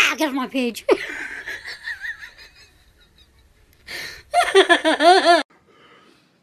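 A young woman sings in a wobbly, strained voice, close to the microphone.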